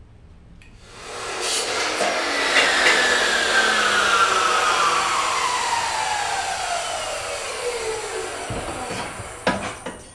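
A metal pipe rings out and slowly fades.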